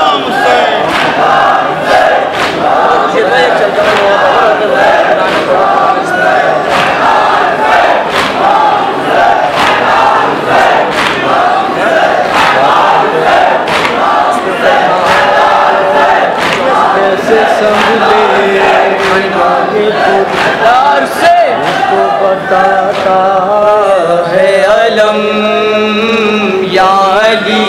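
A man chants loudly into a microphone over loudspeakers in a large echoing hall.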